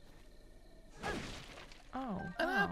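A wooden crate smashes apart with a crunching burst.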